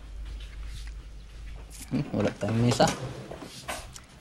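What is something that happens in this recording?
A plate clinks down onto a table.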